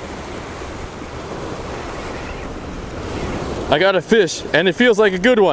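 Waves splash and wash against rocks.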